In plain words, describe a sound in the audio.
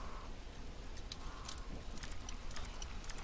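A lock pick clicks and scrapes inside a lock.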